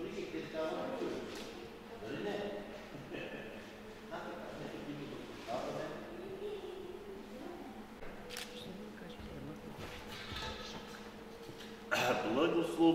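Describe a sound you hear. An elderly man chants steadily in a large echoing hall.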